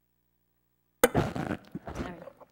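A microphone knocks and thumps as it is adjusted.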